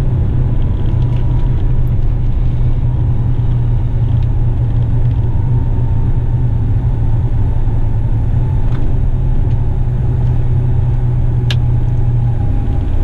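A heavy truck engine rumbles steadily from inside the cab.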